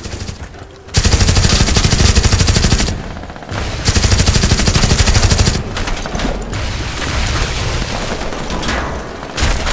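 A machine gun fires loud rapid bursts.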